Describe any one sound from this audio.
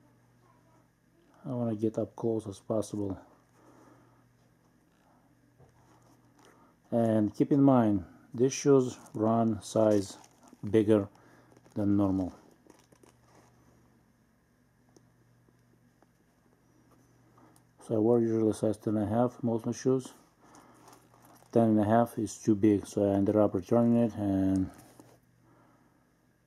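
A stiff leather shoe creaks and rustles as hands turn it over.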